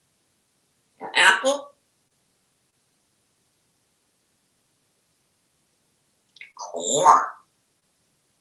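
A parrot talks in a speech-like voice, close by.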